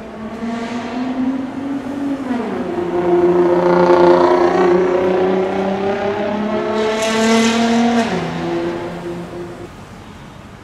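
A sports car engine revs hard and roars as it accelerates past.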